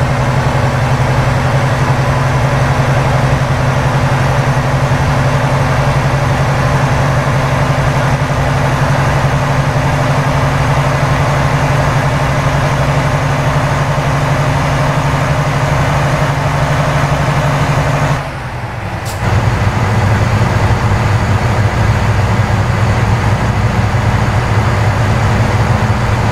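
A truck engine drones steadily while driving, dipping briefly at a gear change.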